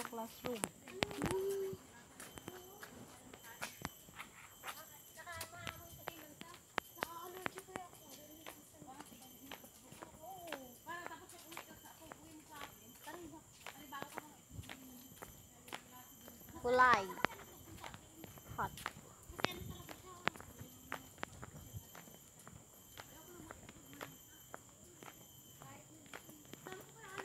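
A young woman talks quietly close by.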